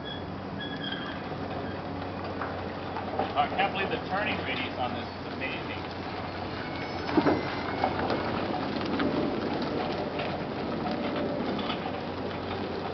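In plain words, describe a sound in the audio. Empty wheeled trailers rattle and clatter over pavement.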